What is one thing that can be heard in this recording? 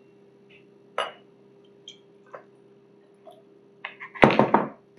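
Glass clinks and knocks on a hard counter.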